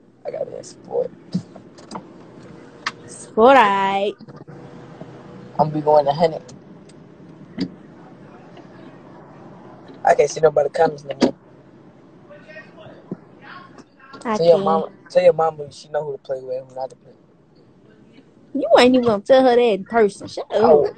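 A boy talks animatedly over a phone connection, in bursts.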